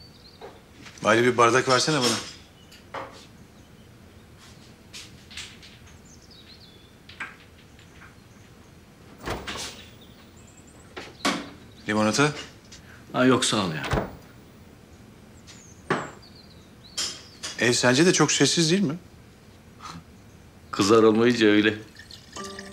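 An older man speaks casually in reply.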